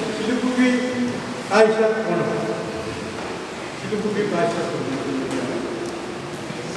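A man speaks steadily through a microphone in a large echoing hall.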